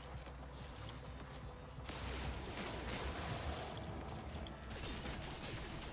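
Laser gunfire zaps in rapid bursts.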